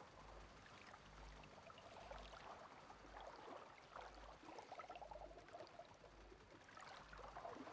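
Water laps and sloshes gently.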